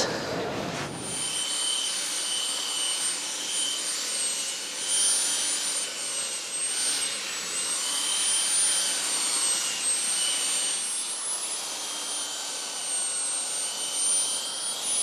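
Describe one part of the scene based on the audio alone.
A power tool whines steadily as it shaves wood.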